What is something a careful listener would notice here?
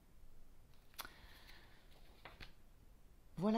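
Paper pages rustle as a page is turned.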